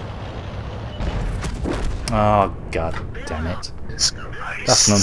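A tank cannon fires with a loud blast.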